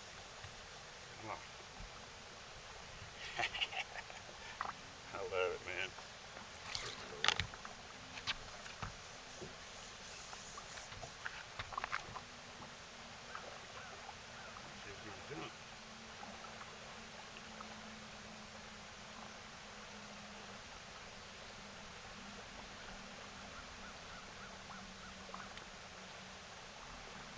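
A fishing reel whirs as line is wound in.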